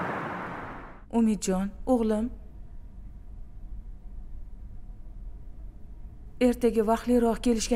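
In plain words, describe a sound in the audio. A woman speaks quietly up close.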